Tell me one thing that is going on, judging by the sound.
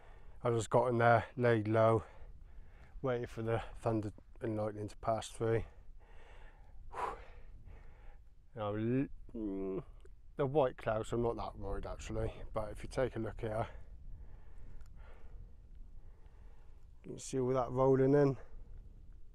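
A middle-aged man talks with animation close to a clip-on microphone.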